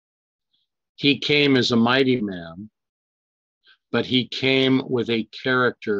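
An elderly man speaks calmly through an online call microphone.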